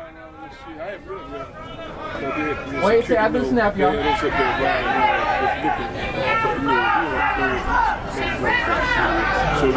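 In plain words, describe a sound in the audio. A brass band plays loudly outdoors, growing louder.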